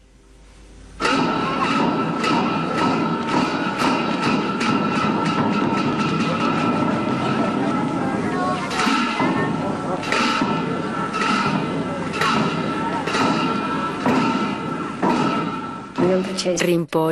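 Drums and cymbals beat in a lively rhythm.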